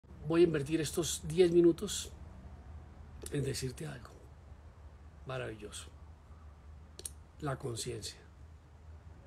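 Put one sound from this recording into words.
A middle-aged man speaks calmly and close to a phone microphone, with pauses between phrases.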